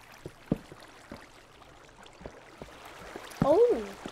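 Water trickles and splashes nearby.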